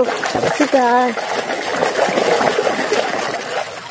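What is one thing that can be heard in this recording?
Thick mud squelches and sloshes as it is stirred.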